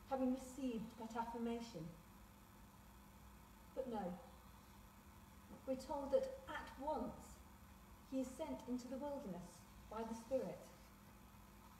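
A woman speaks calmly and slowly in a reverberant hall, with pauses.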